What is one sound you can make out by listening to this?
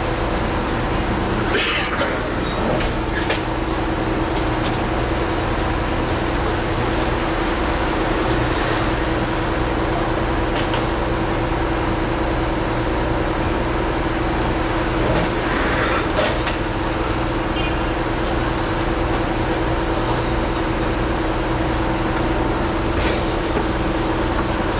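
A vehicle engine idles with a steady low hum, heard from inside.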